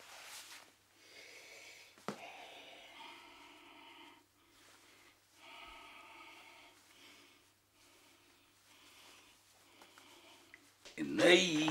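A middle-aged man talks to himself in a low voice.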